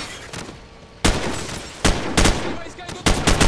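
Rifle shots fire in short, sharp bursts with an echoing crack.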